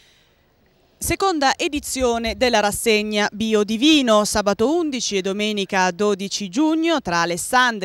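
A young woman speaks clearly into a handheld microphone, close by.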